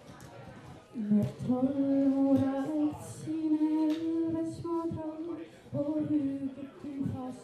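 A young woman sings loudly into a microphone over a loudspeaker.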